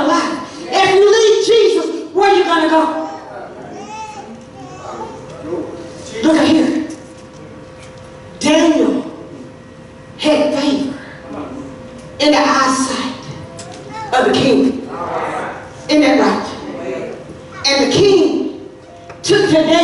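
A man speaks forcefully in short bursts through a microphone in an echoing hall.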